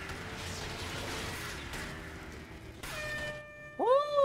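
A buggy engine roars as it races along a dirt track.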